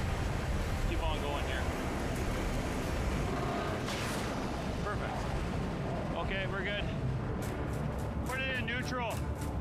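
A man speaks loudly over the wind.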